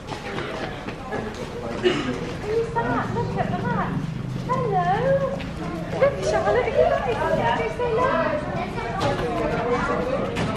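A group of adults and children talk nearby, outdoors.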